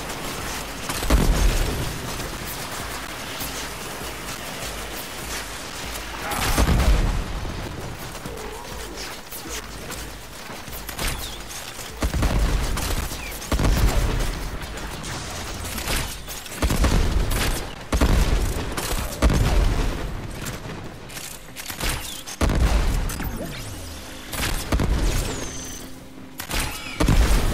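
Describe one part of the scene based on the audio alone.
Gunfire and energy blasts burst out in quick bursts.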